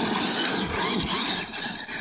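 Tyres of a radio-controlled truck spray sand.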